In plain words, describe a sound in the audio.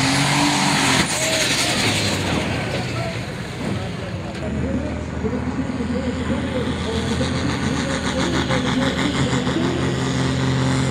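A second tractor engine roars and rumbles steadily, with a deep, throbbing beat.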